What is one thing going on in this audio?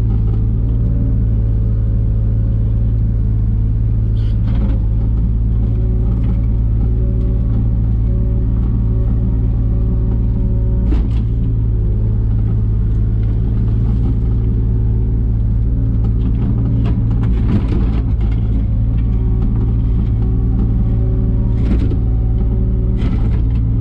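A diesel engine drones steadily and loudly close by.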